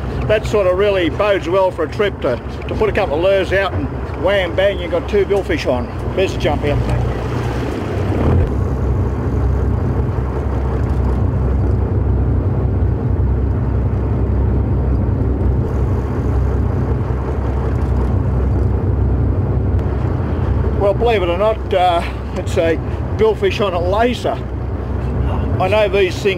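A boat's engine rumbles steadily.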